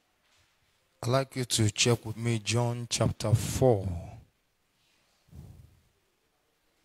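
A man speaks through a microphone over loudspeakers, in short bursts between pauses.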